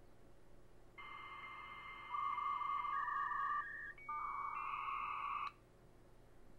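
A modem dials a number in quick beeping tones.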